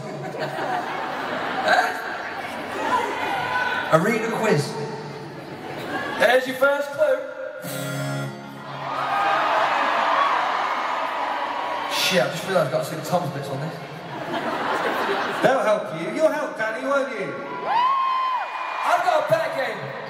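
A man sings into a microphone through loud speakers in a large echoing hall.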